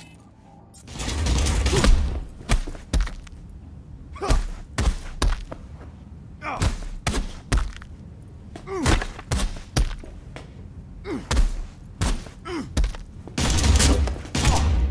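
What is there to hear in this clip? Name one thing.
Heavy blows thud again and again in a close struggle.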